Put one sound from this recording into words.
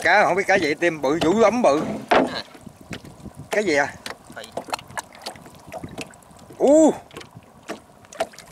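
Water splashes and trickles as hands work in shallow water.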